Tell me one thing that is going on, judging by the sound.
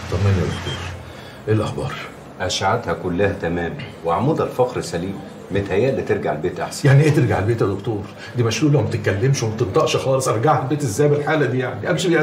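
An elderly man talks with animation, close by.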